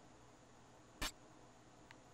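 A short electronic menu click sounds once.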